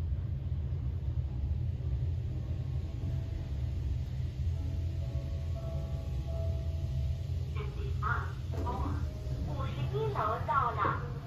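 An elevator hums with a steady low rumble as it rises.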